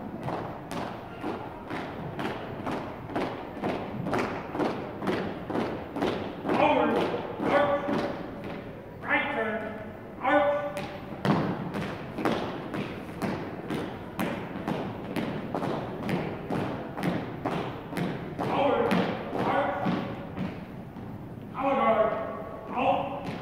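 Boots stamp on a wooden floor in a steady marching rhythm, echoing in a large hall.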